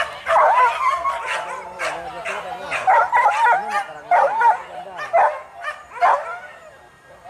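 Hunting dogs yelp and whine excitedly close by.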